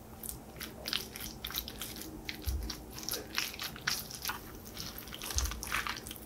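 A wooden spoon scrapes and clatters against a metal bowl while tossing salad leaves.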